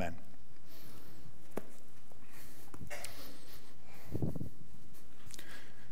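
Footsteps tap on a hard floor in a quiet, echoing room.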